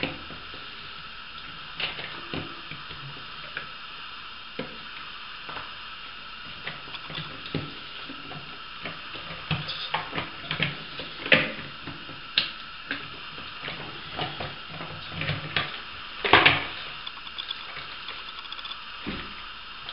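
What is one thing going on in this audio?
Plastic parts click and tap close by.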